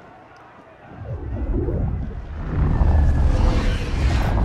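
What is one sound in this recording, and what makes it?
A deep rushing roar swells and grows louder.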